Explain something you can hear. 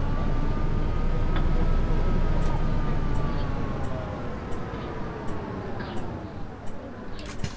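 A bus engine whines and winds down as the bus slows to a stop.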